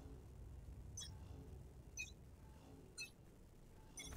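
A short electronic beep sounds once per second as a countdown ends.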